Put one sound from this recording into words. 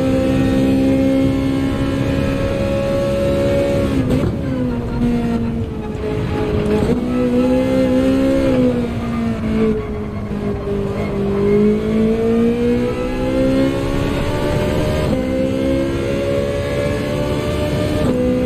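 A racing car engine roars steadily, dropping in pitch when slowing and rising again when speeding up.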